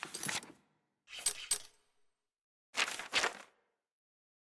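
Paper pages rustle and flip as a journal is leafed through.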